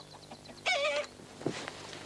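A young woman squeals happily close by.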